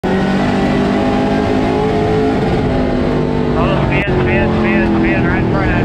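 A race car engine roars loudly from inside the cabin.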